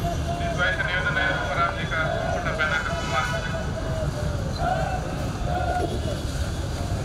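A crowd of men chants slogans loudly outdoors.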